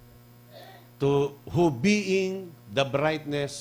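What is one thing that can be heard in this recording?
A middle-aged man speaks with animation into a microphone, heard through loudspeakers.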